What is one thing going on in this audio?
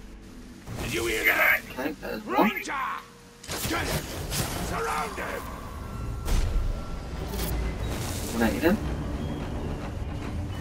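Sword blades clash and strike in close combat.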